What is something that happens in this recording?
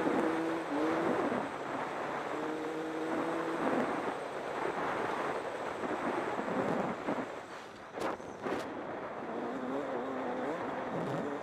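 Knobby tyres crunch over a dirt track.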